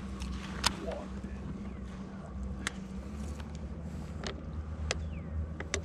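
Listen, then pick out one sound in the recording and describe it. A fishing reel clicks and whirs as line is wound in.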